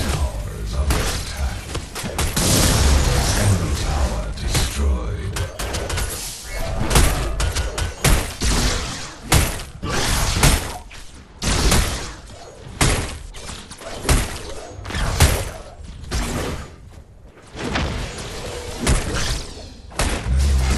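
Video game weapons strike and clash in close combat.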